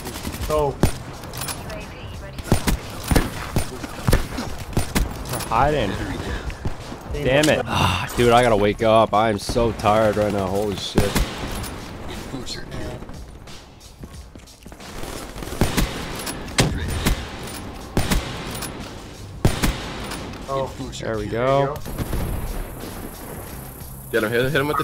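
Gunshots crack sharply again and again.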